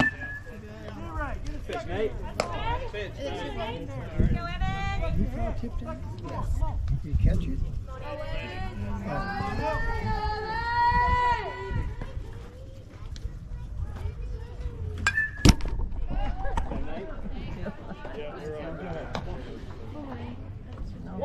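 Young players and spectators shout and chatter across an open field.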